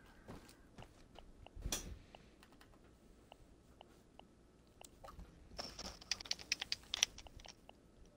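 Soft game menu clicks tick quickly, one after another.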